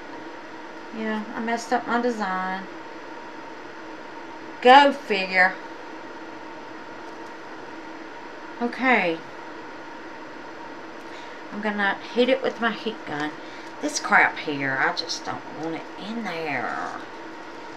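A woman talks calmly close by, in short bursts with pauses.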